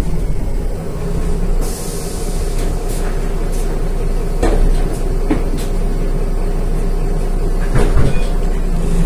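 A bus engine idles more quietly.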